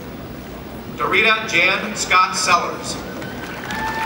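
A man speaks calmly over a loudspeaker in a large echoing hall.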